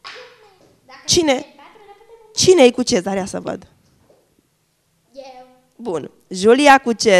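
Young girls answer in high, excited voices.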